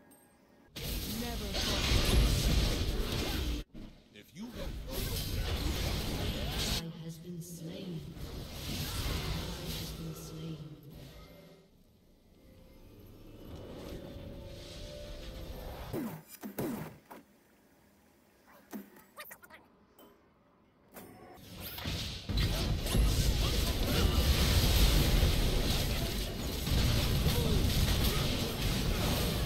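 Fantasy combat sound effects crackle and clash loudly.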